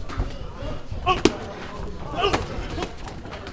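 A man grunts sharply with each strike.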